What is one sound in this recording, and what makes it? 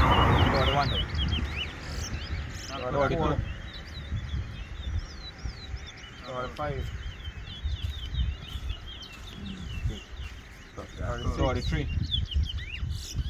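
Small caged birds chirp and whistle close by.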